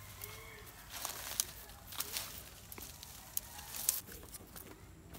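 Dry branches rustle and scrape as they are dragged.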